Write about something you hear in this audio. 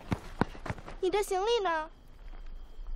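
A teenage girl speaks with emotion, close by.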